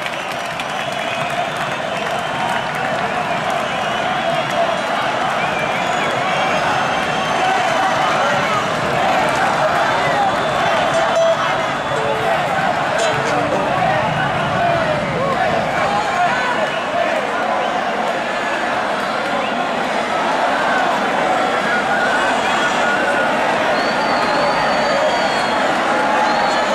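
A large crowd cheers and chatters loudly outdoors.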